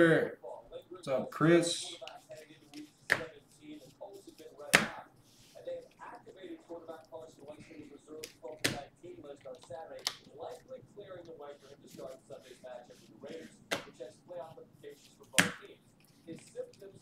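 Trading cards flick and slide against each other as a stack is leafed through by hand.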